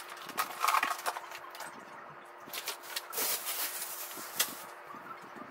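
Fabric rustles and shuffles close by.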